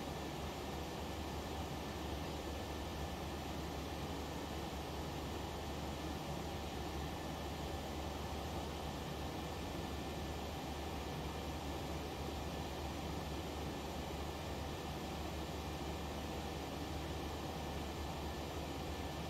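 A jet airliner's engines drone steadily.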